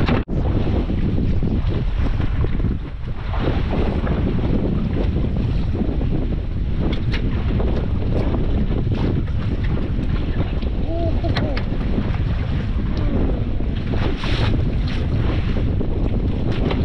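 Wind blows hard and rumbles outdoors on open water.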